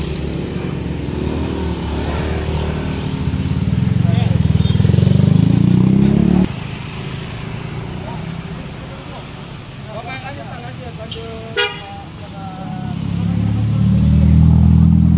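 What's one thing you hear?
A vehicle engine idles close by with a low rumble.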